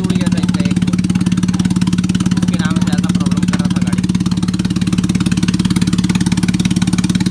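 An engine idles with a steady, fast chugging.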